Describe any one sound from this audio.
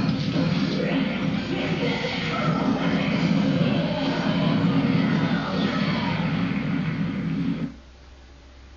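Video game fight sounds and music play loudly through a television speaker, then stop suddenly.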